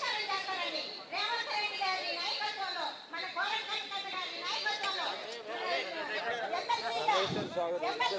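An elderly woman speaks with animation into a microphone, heard through loudspeakers.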